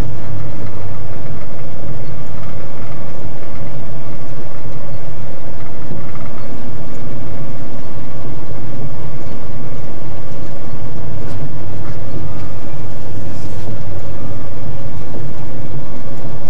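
Windshield wipers sweep across the glass.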